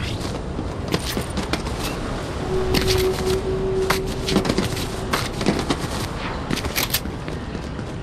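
Short clattering game sound effects click and thud as a character climbs a wall.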